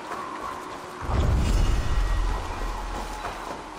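A fire flares up with a deep, rushing whoosh.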